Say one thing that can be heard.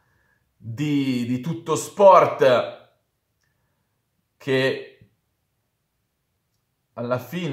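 A man speaks close to the microphone in short bursts with pauses.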